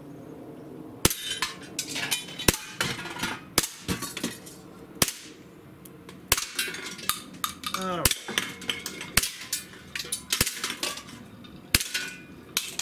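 An air pistol fires in sharp, quick pops.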